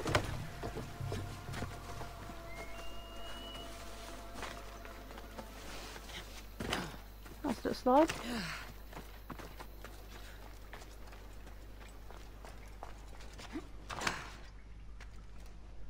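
Footsteps run over grass and rock.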